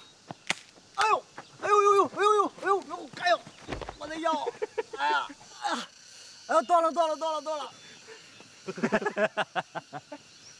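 A man groans and cries out in pain with a strained voice.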